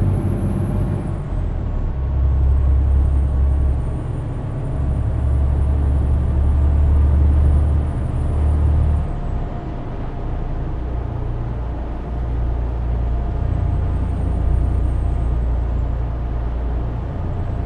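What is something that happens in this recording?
A truck engine rumbles steadily while driving.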